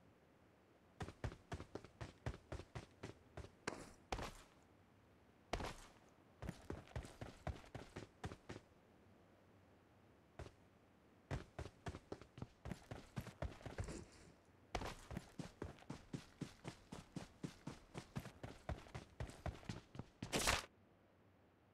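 Footsteps run quickly over hard ground and grass.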